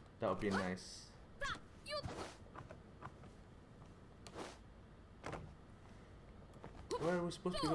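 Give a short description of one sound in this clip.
A man talks with animation into a microphone.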